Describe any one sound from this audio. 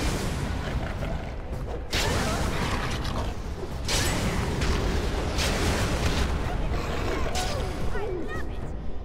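Swords clash in a fight.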